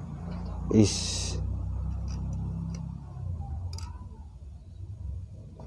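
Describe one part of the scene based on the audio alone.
Small metal parts click and tap softly as they are adjusted by hand.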